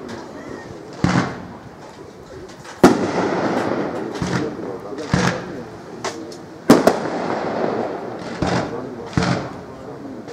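Fireworks burst with loud booms that echo away.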